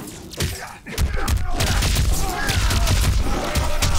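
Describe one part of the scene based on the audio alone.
Electric blasts crackle and burst.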